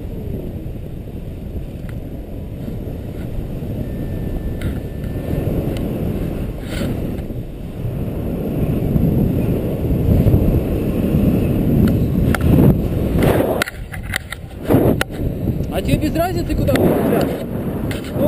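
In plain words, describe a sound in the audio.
Wind rushes past in flight, buffeting the microphone.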